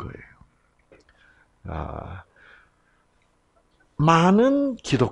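An elderly man speaks with animation through a microphone.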